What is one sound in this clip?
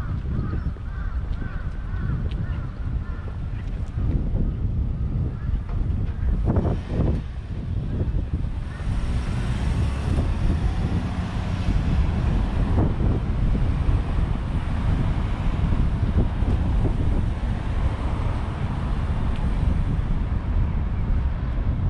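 Cars drive past on a nearby road.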